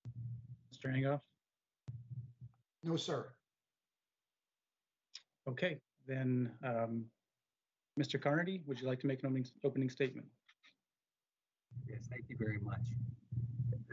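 A man speaks calmly over an online call, with short pauses.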